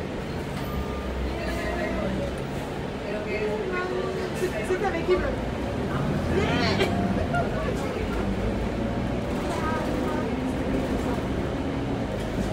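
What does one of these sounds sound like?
A bus engine hums steadily while the bus drives along.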